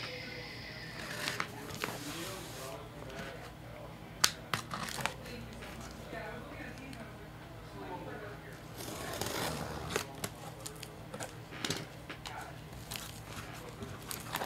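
A cardboard box scrapes and thumps as it is handled.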